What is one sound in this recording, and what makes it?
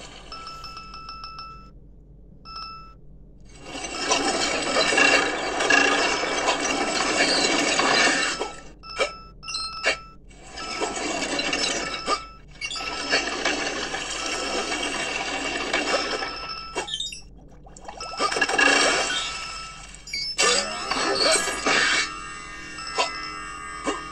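Electronic game music and effects play from small phone speakers.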